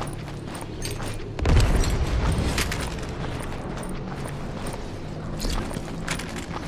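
Footsteps patter on a wooden floor.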